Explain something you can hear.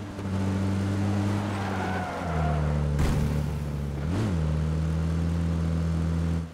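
An engine hums steadily, shifting pitch as the vehicle climbs.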